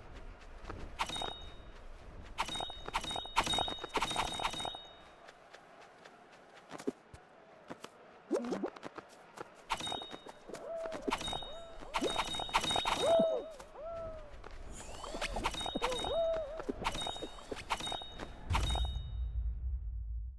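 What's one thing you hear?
Bouncy cartoon jump sounds pop again and again.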